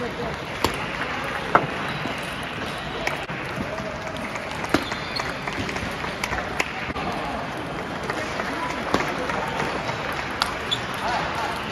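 A table tennis ball clicks sharply back and forth on paddles and table.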